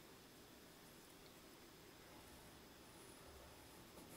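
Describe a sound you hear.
A pencil scratches softly on paper as it colours in.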